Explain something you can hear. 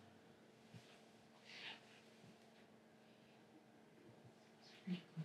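Soft footsteps move slowly across a hard floor.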